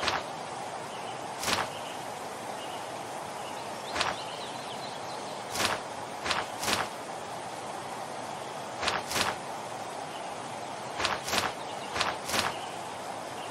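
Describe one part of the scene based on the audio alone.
Short whooshing game effects sound again and again.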